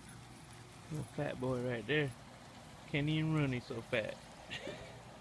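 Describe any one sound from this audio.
A puppy yelps and whines in high, short cries.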